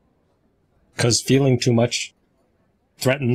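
A man speaks with animation through a microphone over an online call.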